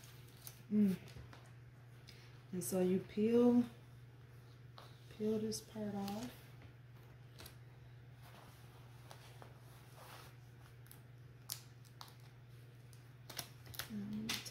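Fingertips rub and press a plastic sheet onto cloth with soft rustling.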